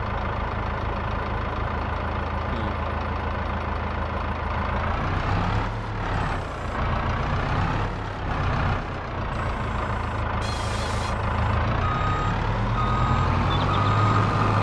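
A heavy machine engine rumbles steadily.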